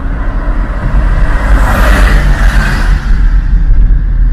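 A truck passes close by with a rushing whoosh.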